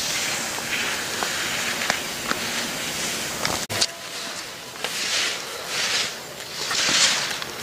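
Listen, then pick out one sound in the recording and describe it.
Skis scrape and hiss over snow in swelling swishes.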